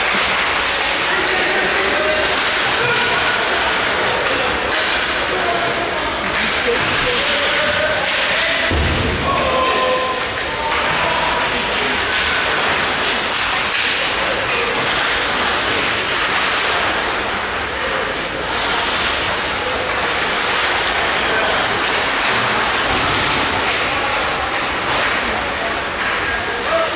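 Skates scrape and hiss across ice in a large echoing rink.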